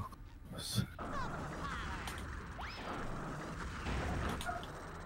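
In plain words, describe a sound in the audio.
Bubbles fizz and pop steadily.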